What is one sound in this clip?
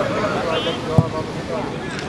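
A foot kicks a football with a sharp thud.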